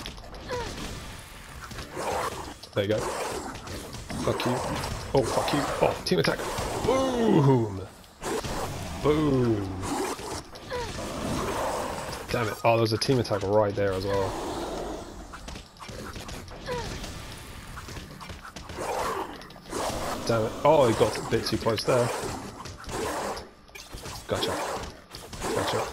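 Sword slashes swish and clang in quick bursts.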